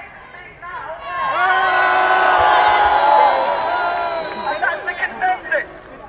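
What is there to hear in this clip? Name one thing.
A large crowd cheers loudly.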